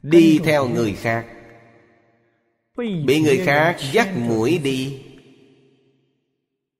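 An elderly man speaks calmly and slowly into a close microphone.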